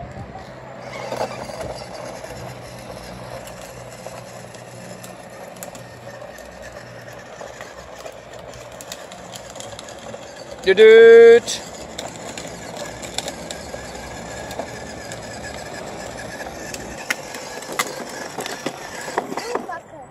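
A small plastic toy scooter hums and rattles as it rolls over rough pavement.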